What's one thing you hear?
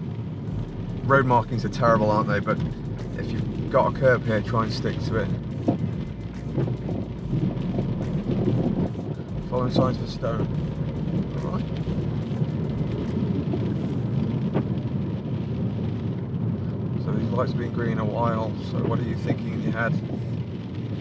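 A man talks calmly nearby inside a car.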